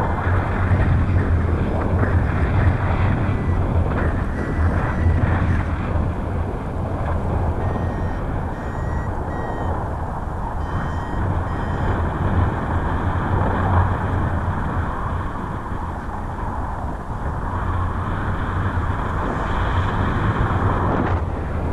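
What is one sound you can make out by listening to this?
Strong wind rushes and buffets loudly past the microphone throughout.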